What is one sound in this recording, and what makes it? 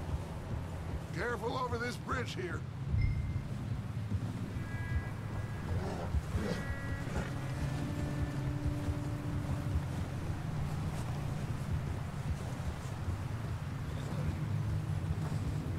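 Horses' hooves thud steadily on snow.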